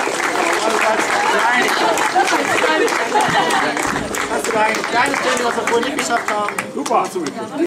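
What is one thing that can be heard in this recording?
A man and a woman clap their hands.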